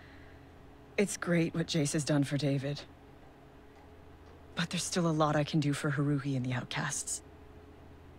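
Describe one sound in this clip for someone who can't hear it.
A young woman speaks softly and calmly.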